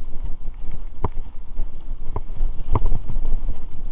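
A bicycle's frame rattles and clatters over bumps.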